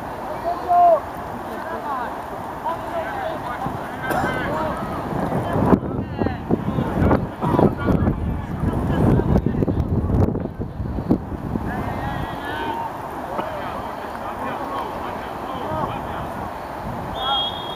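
Teenage boys shout to each other from across an outdoor field.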